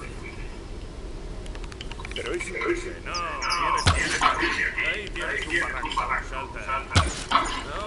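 A bowstring creaks as it is drawn tight.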